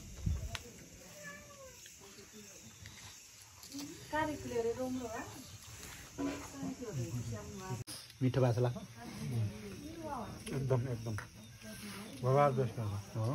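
Men talk casually close by.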